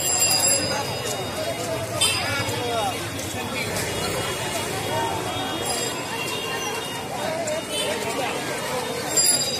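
Motorcycle engines idle and pass by nearby.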